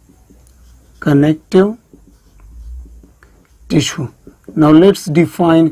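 A man speaks in a calm, lecturing voice close by.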